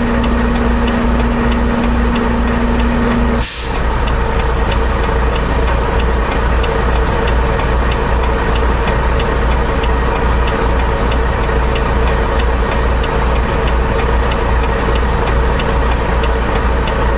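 A truck engine idles with a steady low rumble.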